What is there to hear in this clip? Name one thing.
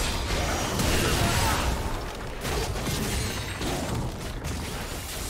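Video game spell effects whoosh and crackle in a busy battle.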